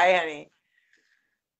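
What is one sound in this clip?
A middle-aged woman laughs briefly over an online call.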